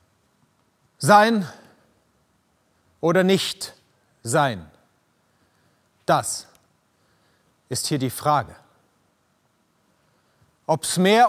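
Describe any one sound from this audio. A man speaks slowly and dramatically in bursts, close by, with pauses between phrases.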